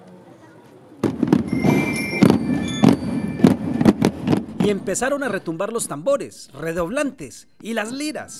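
A group of children beats drums loudly together.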